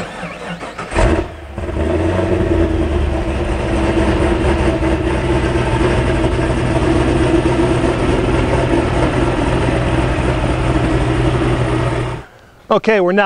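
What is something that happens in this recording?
A car engine starts and idles with a steady low rumble.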